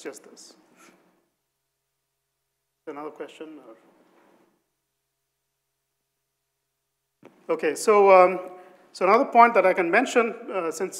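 A man lectures through a microphone in a large hall, speaking in bursts with pauses.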